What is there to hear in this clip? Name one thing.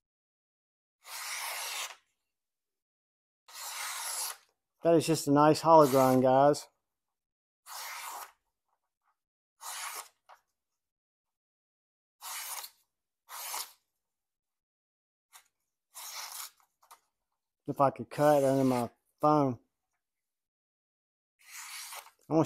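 A sharp blade slices through paper with quick, hissing swishes.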